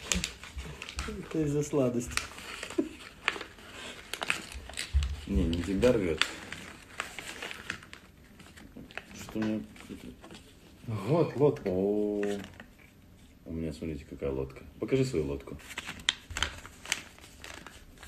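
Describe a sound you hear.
Paper rustles and crinkles as it is folded.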